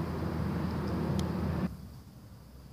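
Wind rustles through tree leaves outdoors.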